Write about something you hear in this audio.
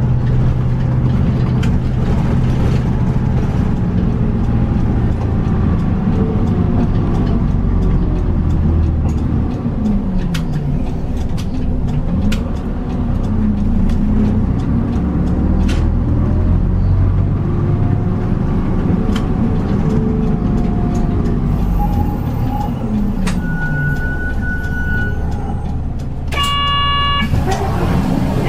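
A diesel city bus engine rumbles and rises and falls in pitch as the bus drives and turns.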